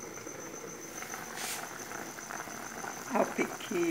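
A metal lid clinks against a pot.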